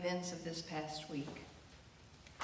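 A woman reads out slowly in a large echoing room.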